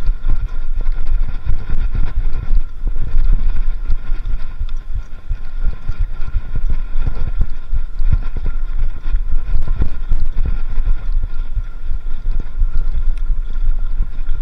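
Bicycle tyres roll and rattle over a bumpy dirt trail.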